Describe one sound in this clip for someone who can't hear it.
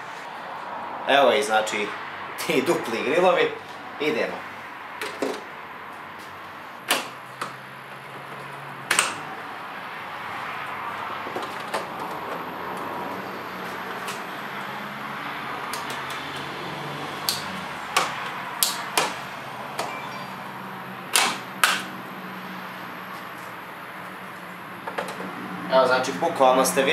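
Plastic parts click and snap as they are pressed and pulled into place.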